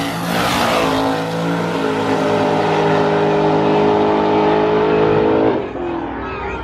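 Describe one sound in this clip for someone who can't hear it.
A drag racing car roars loudly as it launches and speeds away down the track.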